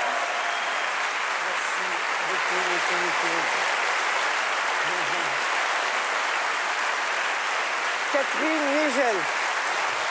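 A large audience applauds steadily in an echoing hall.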